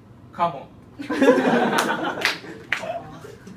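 Several young people laugh loudly nearby.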